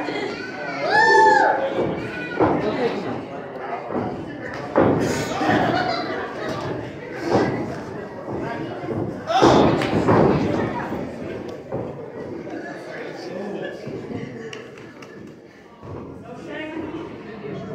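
Feet thud on a wrestling ring's canvas.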